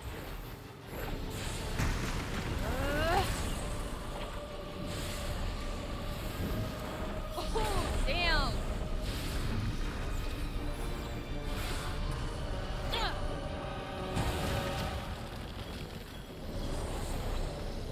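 Flames roar and crackle in bursts.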